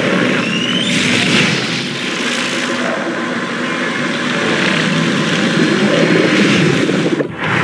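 A bright magical shimmer swirls and sparkles.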